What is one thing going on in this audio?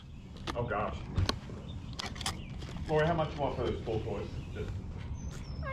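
Plastic toy packages rustle and click as they are handled.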